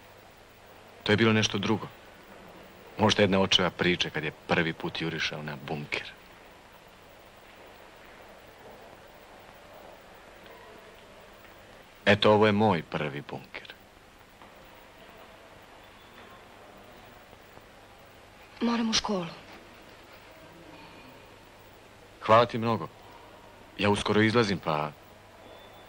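A young man speaks quietly, close by, in short bursts with pauses.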